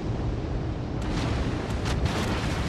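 Shells splash and burst in water nearby.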